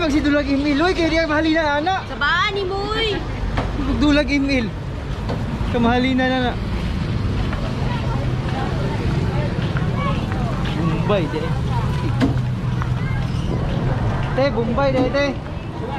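Outdoors, a steady low murmur of a busy street market.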